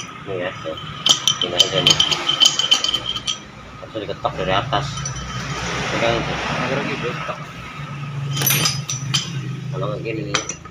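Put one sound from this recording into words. A metal rod clinks and taps inside a metal housing.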